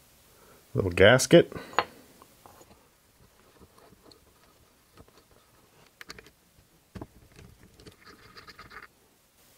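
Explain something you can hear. Small metal parts click and tap as hands handle a miniature engine.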